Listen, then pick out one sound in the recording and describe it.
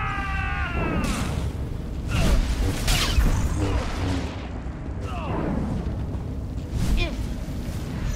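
Blows and energy blasts strike with sharp bursts.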